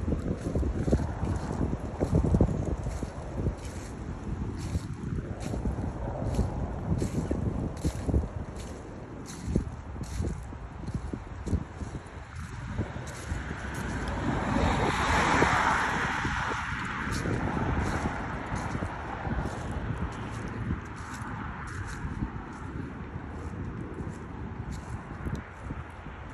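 Footsteps crunch on grass and dry leaves.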